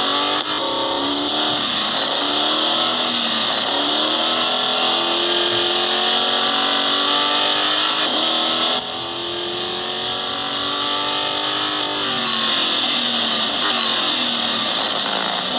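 A racing car engine roars and revs up and down through gear changes.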